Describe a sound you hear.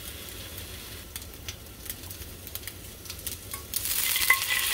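Hot oil crackles and spits in a frying pan.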